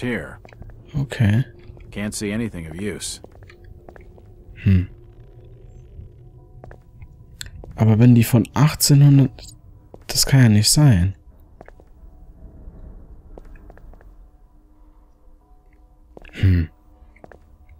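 A man talks into a microphone, close up, in short bursts.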